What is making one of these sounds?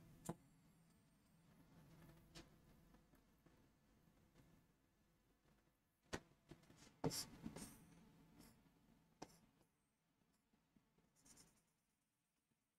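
A marker taps and scratches on a board.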